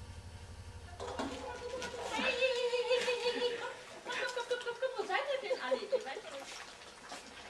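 Puppies whine and yelp excitedly.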